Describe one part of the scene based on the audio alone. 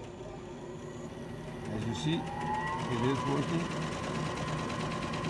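A machine motor starts up and whirs, rising steadily in pitch.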